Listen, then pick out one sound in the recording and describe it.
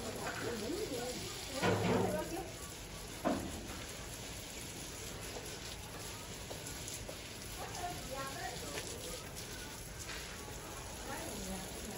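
A hose nozzle sprays a fine hissing mist of water onto plants.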